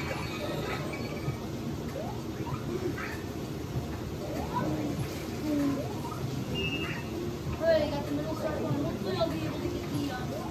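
Upbeat video game music plays from a television's speakers.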